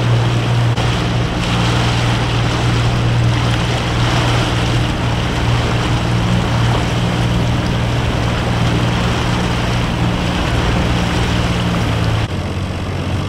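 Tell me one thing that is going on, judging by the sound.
A motorboat engine drones steadily close by.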